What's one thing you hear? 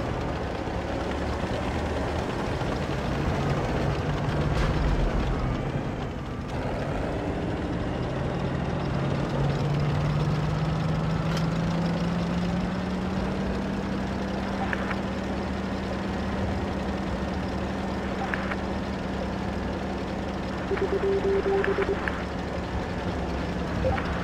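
A tank engine rumbles steadily and rises in pitch as the tank speeds up.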